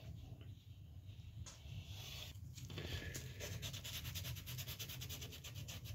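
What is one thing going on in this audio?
A fingertip rubs across a wooden surface.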